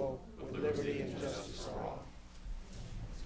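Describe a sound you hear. Several adults murmur and talk quietly.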